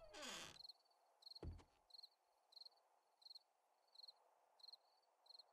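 Footsteps thud on a wooden floor at a steady pace.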